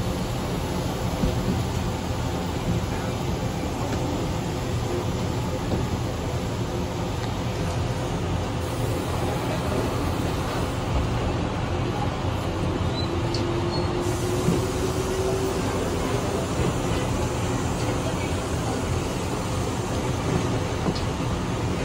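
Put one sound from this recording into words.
A train's wheels clatter over rail joints.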